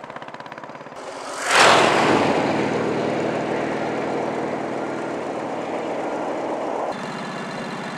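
A motorcycle roars loudly past up close and fades off.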